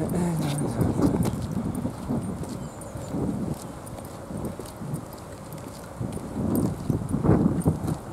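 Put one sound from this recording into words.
Small hard wheels roll and rumble over rough asphalt.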